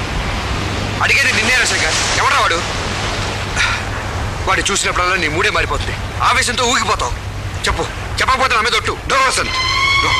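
A young man talks with emotion nearby.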